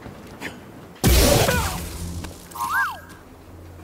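A lightsaber ignites with a loud whoosh.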